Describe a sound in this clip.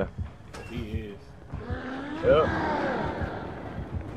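A metal locker door creaks open and bangs shut.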